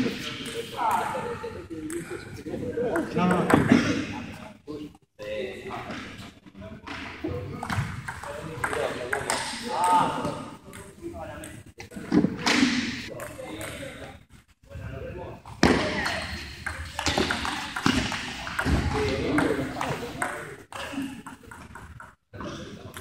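A ping-pong ball clicks back and forth across a table in a large echoing hall.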